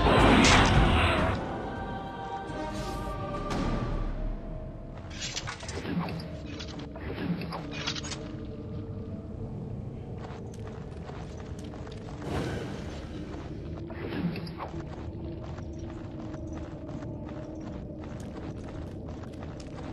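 Magic spells crackle and whoosh again and again.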